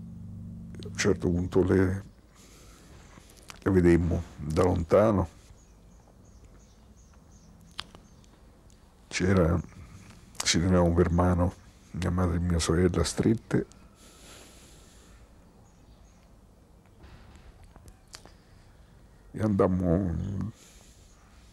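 An elderly man speaks slowly and haltingly, close by, with long pauses.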